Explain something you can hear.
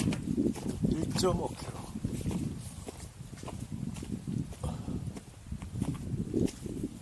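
Footsteps thud and crunch steadily on a dirt trail.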